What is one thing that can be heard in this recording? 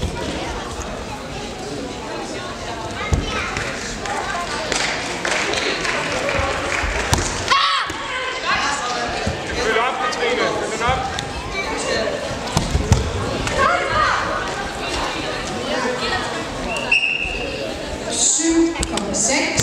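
A crowd chatters throughout a large echoing hall.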